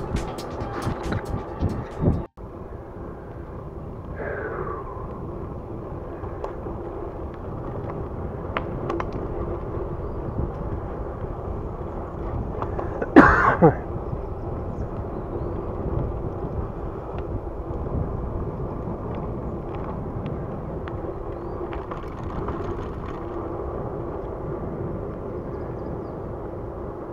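Wind rushes and buffets past a moving bicycle.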